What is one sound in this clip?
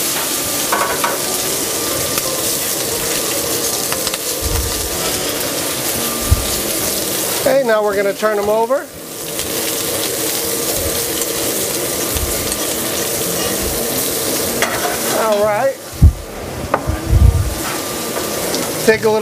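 Shrimp sizzle loudly in a hot pan.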